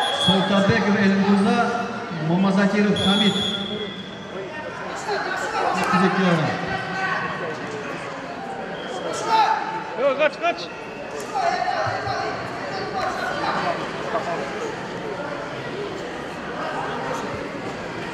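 A crowd of children chatters and shouts in a large echoing hall.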